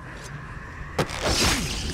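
A heavy blow lands with a sudden thud.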